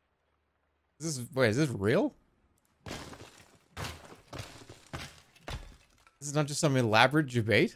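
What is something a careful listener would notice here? A sledgehammer smashes into wood and stone.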